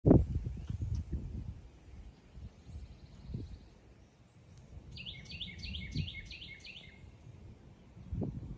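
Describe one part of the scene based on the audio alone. Wind gusts outdoors and buffets the microphone.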